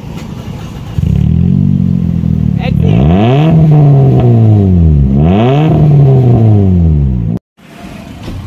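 A car engine revs hard twice, close by, and then drops back.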